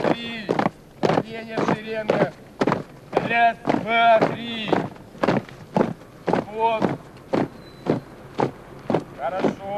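A group of boys sings loudly together.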